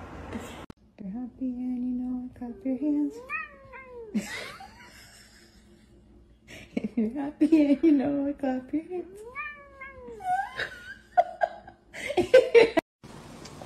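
A cat meows repeatedly, close by.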